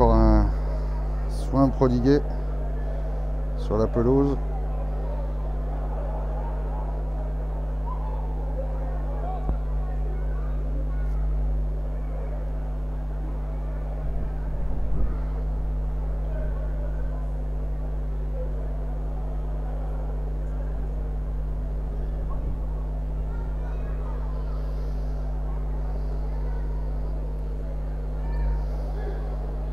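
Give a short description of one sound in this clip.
Men talk faintly on an open field.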